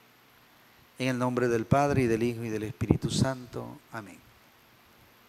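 A middle-aged man speaks calmly into a microphone in a room with a slight echo.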